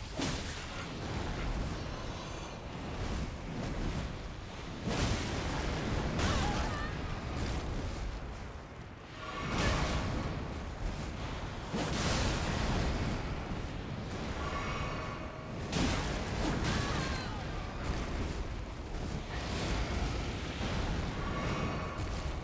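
Heavy blasts and crashes boom again and again.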